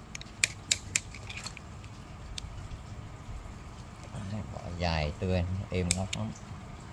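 A knife clicks and scrapes against wood.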